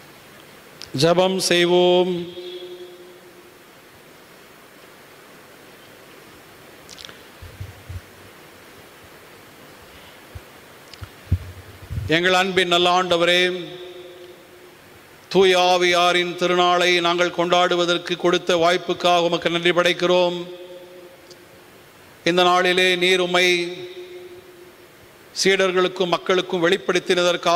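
A man chants a liturgy in a steady sung voice, in phrases with pauses between them.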